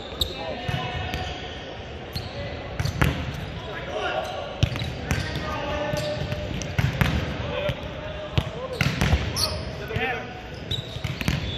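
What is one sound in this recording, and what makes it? A volleyball thumps off players' hands and arms in a large echoing gym.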